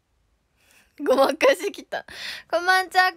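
A young woman speaks brightly close to a phone microphone.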